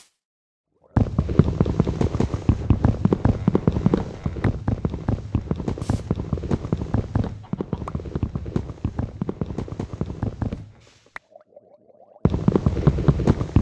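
Leafy blocks rustle and crunch as they are broken repeatedly.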